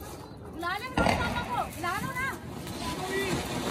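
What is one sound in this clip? A firework fountain hisses and crackles loudly.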